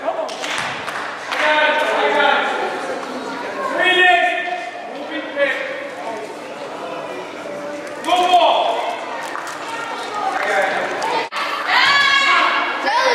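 Children and adults shout and cheer loudly in a large echoing hall.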